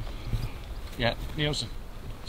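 A golf club hits a ball with a sharp click.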